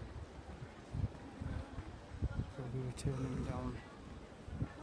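Men and women chatter nearby outdoors.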